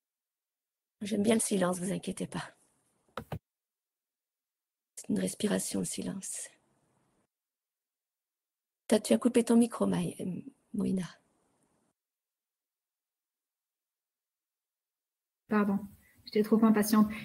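A woman speaks over an online call, in short bursts with pauses.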